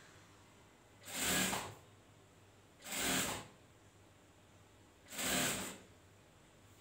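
A sewing machine whirs in short bursts, close by.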